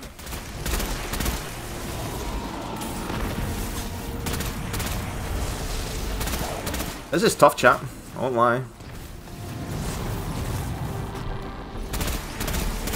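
Gunshots from a game weapon fire in bursts.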